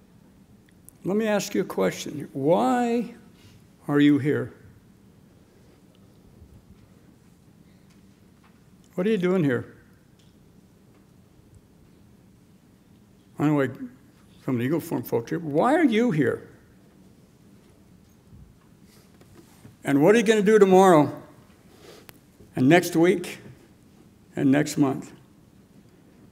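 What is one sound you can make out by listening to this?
An older man speaks slowly and calmly into a microphone, with pauses between phrases.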